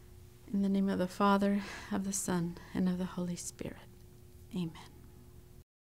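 A young woman speaks calmly and clearly close to a microphone.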